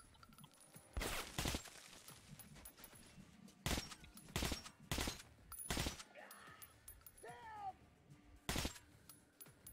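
A rifle fires several loud, sharp shots.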